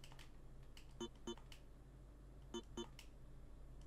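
Short electronic beeps sound in pairs.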